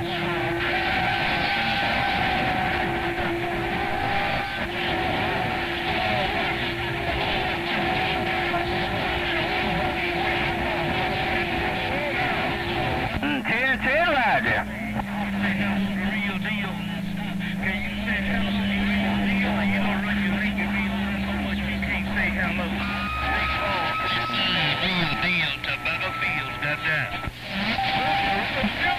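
Warbling whistle tones drift in and out over a radio loudspeaker.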